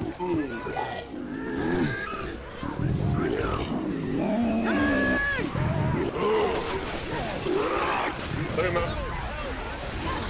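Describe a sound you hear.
A large monster roars and growls.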